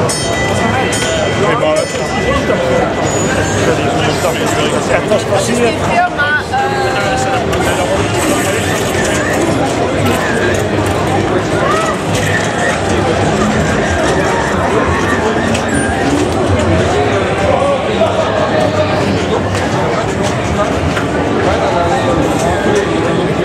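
Pinball machines ring, beep and play electronic music.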